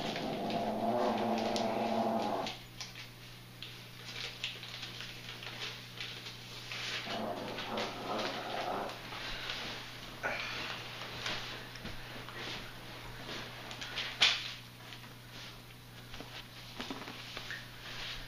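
A small dog chews and tugs at a plush toy.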